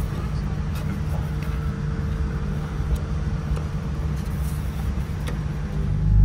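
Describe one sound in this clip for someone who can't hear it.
A low, steady hum of an aircraft cabin drones throughout.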